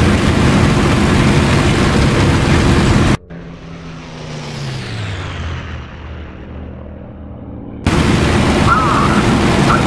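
A propeller aircraft engine roars loudly and steadily close by.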